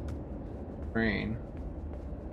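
A man makes a short vocal sound close to a microphone.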